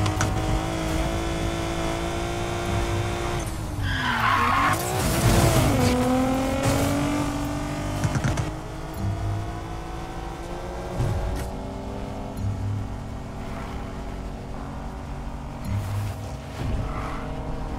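A sports car engine roars at high revs.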